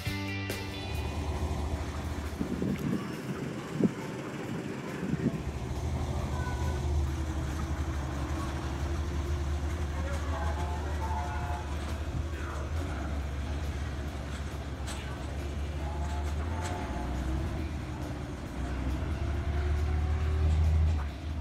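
A small diesel locomotive engine rumbles and chugs steadily.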